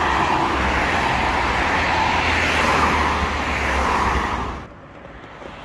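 Traffic roars along a busy road.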